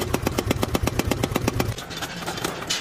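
A power hammer pounds hot metal with rapid heavy thumps.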